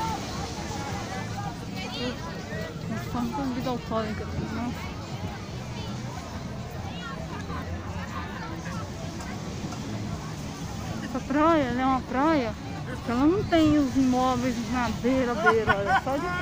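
Men and women chatter and call out in a crowd outdoors.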